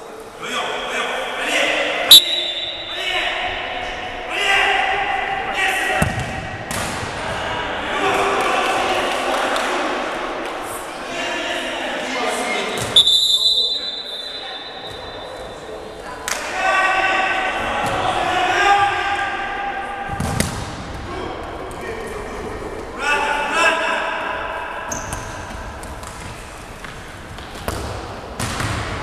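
Young men shout to each other across a large echoing hall.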